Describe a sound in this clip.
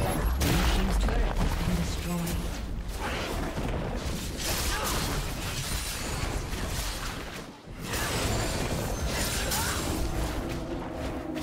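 Game spell effects whoosh and crash as characters fight.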